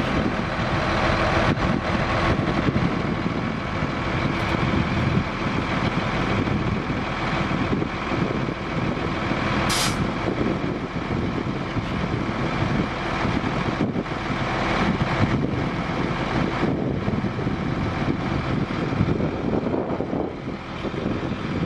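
A truck's diesel engine runs loudly and steadily.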